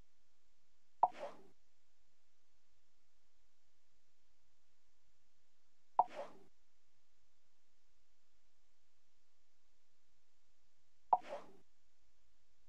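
A short whoosh sounds each time a game menu switches pages.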